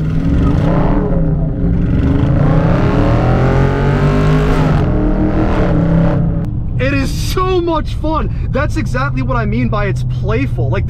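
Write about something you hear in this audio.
A car engine roars loudly as it accelerates, its pitch rising and then settling to a low steady rumble.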